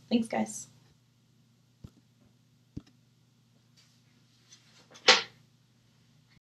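A woman speaks in short bursts close to a microphone.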